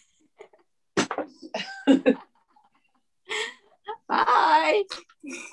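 A woman laughs over an online call.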